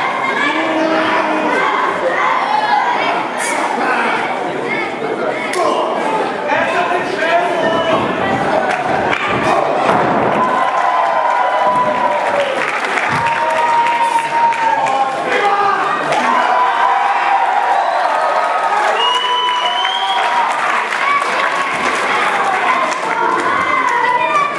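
A crowd cheers and chants loudly in an echoing hall.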